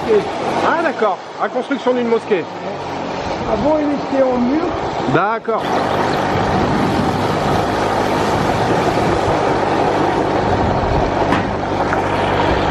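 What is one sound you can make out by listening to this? A motorbike engine revs and hums while riding along.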